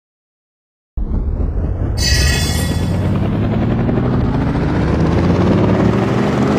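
A helicopter's rotor whirs loudly with a steady low drone, its engine pitch slowly rising.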